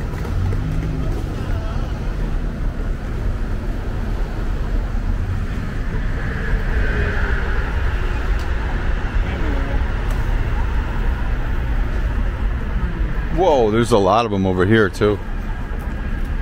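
Traffic hums steadily in the distance.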